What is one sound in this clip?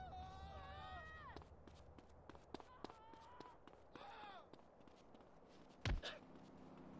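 Quick footsteps slap on pavement as someone runs.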